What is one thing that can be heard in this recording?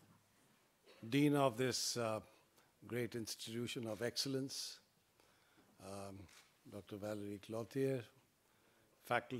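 A man speaks calmly into a microphone, with pauses, in a large room.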